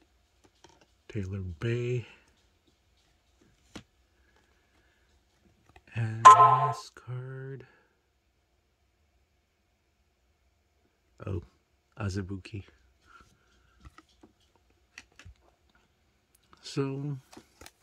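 Trading cards rustle and click softly as they are handled.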